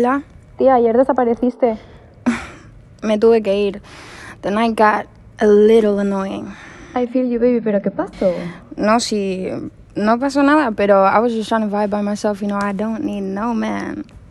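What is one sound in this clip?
Another young woman answers through a phone.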